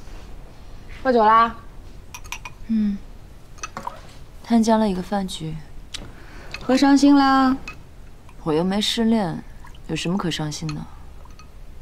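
A young woman speaks calmly nearby, asking questions.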